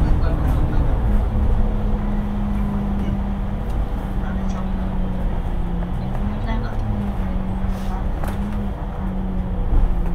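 A bus engine hums steadily from close by.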